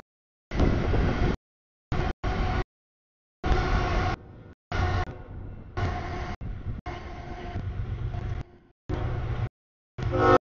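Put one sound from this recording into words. A railroad crossing bell clangs steadily.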